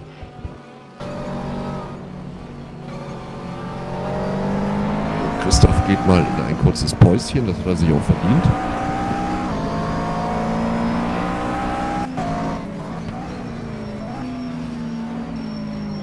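A racing car engine drones from close by, rising in pitch as it shifts through the gears.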